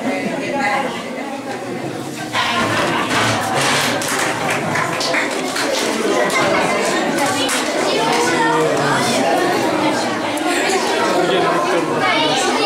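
Young people chatter and talk over one another.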